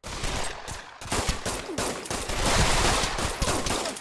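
A pistol fires several shots.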